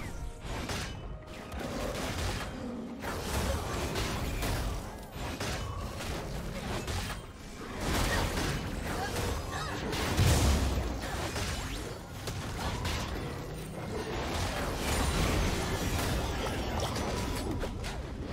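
Fighting game effects whoosh, crackle and thud in a busy skirmish.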